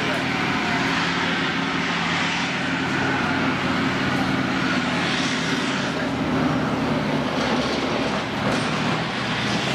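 A tank engine roars steadily as the tank drives over rough ground.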